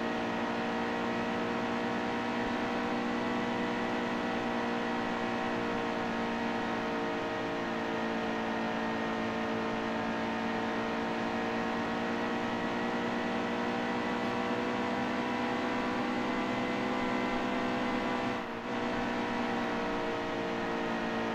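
A race car engine roars steadily at high speed, its pitch shifting slightly through the turns.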